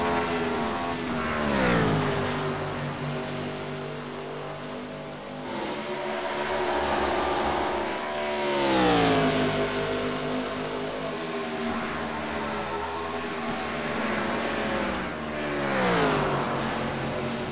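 A race car roars past close by, its engine note dropping as it passes.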